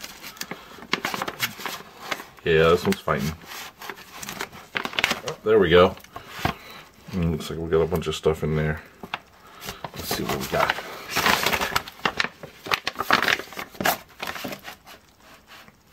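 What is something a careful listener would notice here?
A thick plastic pouch crinkles and rustles as hands tear and open it.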